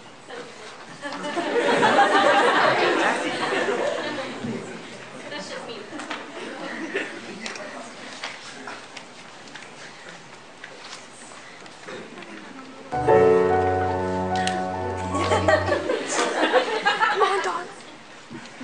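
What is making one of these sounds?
An audience applauds and cheers in a hall.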